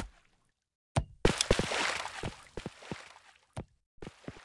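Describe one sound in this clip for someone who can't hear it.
Water splashes and rushes as a ball skims through it.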